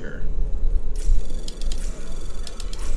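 Electronic beeps and chirps sound from a hacking interface.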